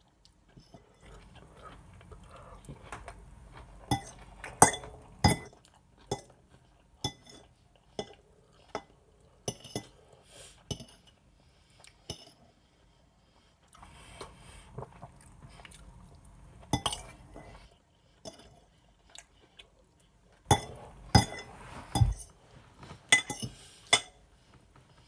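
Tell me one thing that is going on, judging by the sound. A fork scrapes and clinks against a dish.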